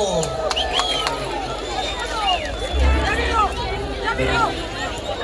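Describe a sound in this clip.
Children shout and call out in high voices.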